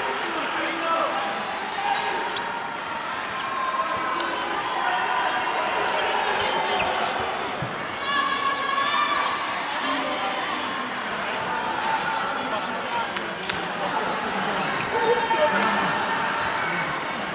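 A crowd of men cheer and chatter loudly in a large echoing hall.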